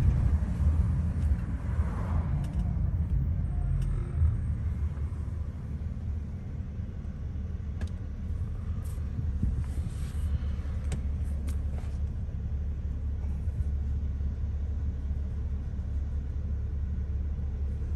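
A car engine rumbles low and steady from inside the vehicle.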